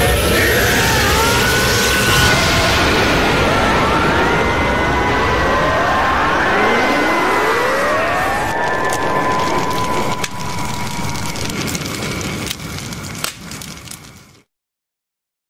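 A loud energy blast roars and whooshes with rising tones.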